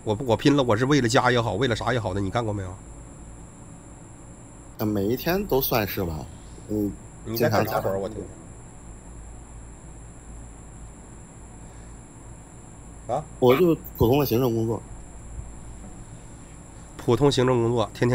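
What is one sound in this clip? A young man talks close to a microphone, in short bursts with pauses.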